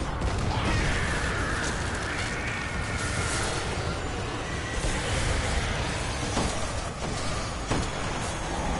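A rifle fires sharp, booming shots.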